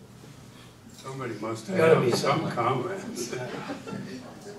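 A second elderly man speaks briefly through a microphone.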